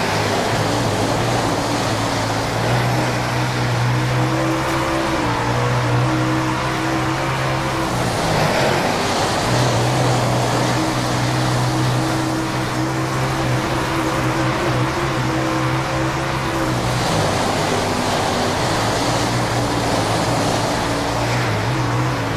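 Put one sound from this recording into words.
A racing car engine roars and revs, shifting pitch through gear changes.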